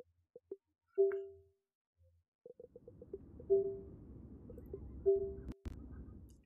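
A short, soft electronic chime rings a few times.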